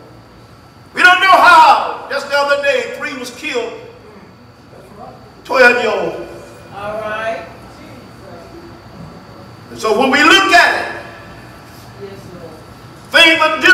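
A middle-aged man preaches with passion in bursts through a microphone, in an echoing hall.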